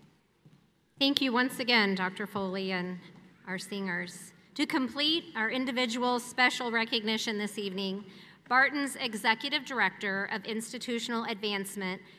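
A young woman speaks calmly into a microphone, heard through loudspeakers in a large hall.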